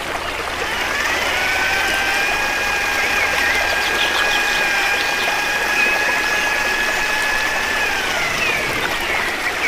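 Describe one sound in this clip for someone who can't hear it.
An electric drill whines as it spins up, runs steadily, then winds down.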